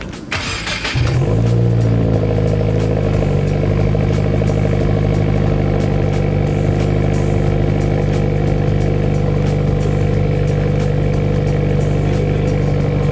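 A car engine starts and settles into a steady, deep exhaust rumble at idle.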